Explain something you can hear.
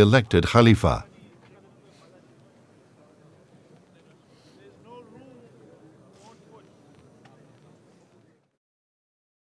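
A crowd of men murmurs and shuffles.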